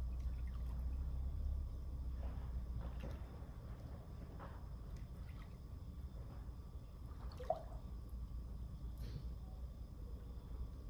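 Water laps and splashes softly as a person swims in a pool.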